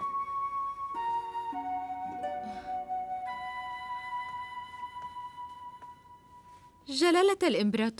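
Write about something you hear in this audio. A zither plays a slow, plucked melody.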